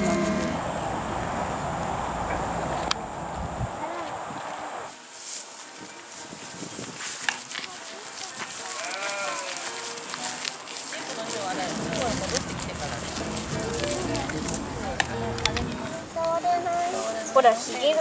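Sheep tear and munch grass.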